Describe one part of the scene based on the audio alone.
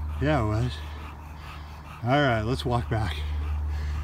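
A dog pants heavily.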